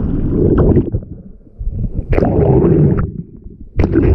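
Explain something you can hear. Water splashes at the surface.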